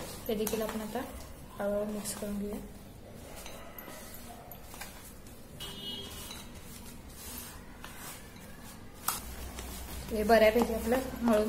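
Hands knead dough with soft rustling.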